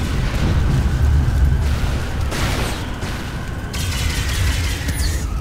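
A hovering vehicle's engine hums with a deep, steady drone.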